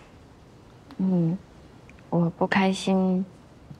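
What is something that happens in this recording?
A young woman speaks softly and hesitantly, close by.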